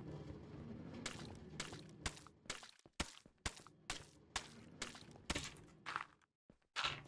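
Game blocks click as they are placed and broken.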